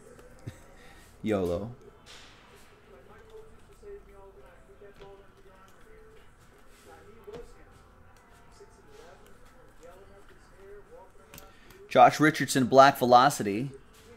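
Trading cards shuffle and slide in hands.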